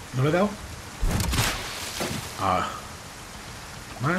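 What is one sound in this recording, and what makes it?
A thrown harpoon whooshes through the air.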